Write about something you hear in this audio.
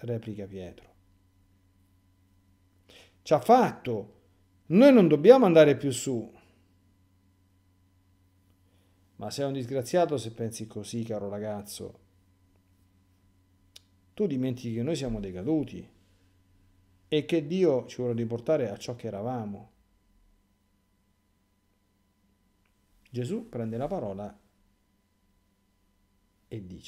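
A middle-aged man speaks calmly and thoughtfully into a microphone, with long pauses.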